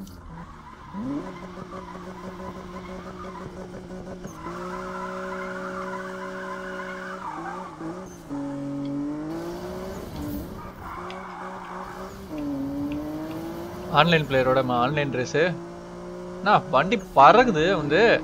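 A car engine revs hard and roars as it accelerates.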